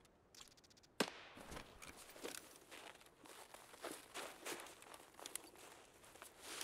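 Footsteps rustle through grass and snow.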